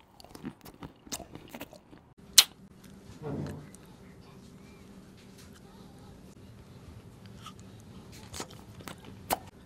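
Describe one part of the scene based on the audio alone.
A man chews with wet mouth sounds close to the microphone.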